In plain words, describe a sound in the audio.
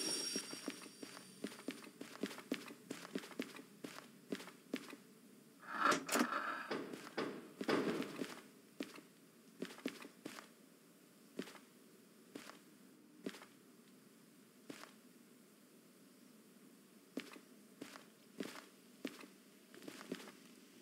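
Footsteps clank on metal stairs and a metal walkway.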